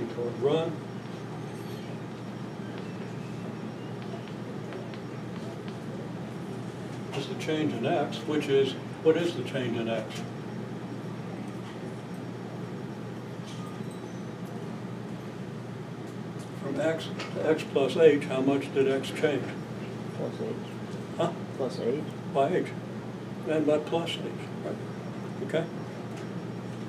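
An elderly man speaks calmly in short bursts, with pauses.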